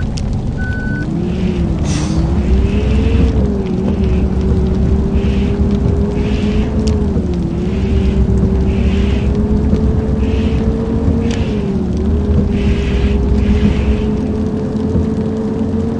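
A bus engine rumbles and rises in pitch as it speeds up, dipping briefly at gear changes.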